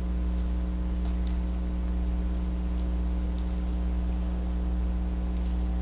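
Powder pours softly from a scoop.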